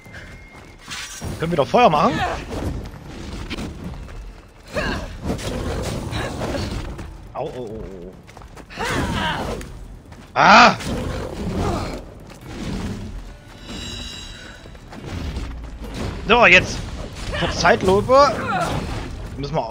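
A sword slashes and strikes with a whoosh.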